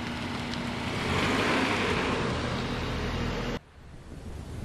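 A car drives slowly away.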